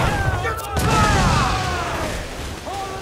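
A cannonball explodes against a ship with a loud boom.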